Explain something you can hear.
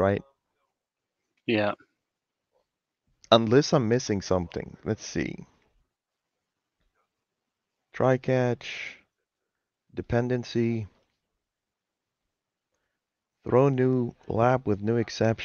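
A man speaks calmly over an online call, in short bursts with pauses.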